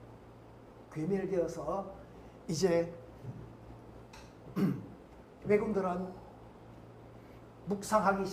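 An elderly man speaks calmly into a microphone, explaining in short phrases.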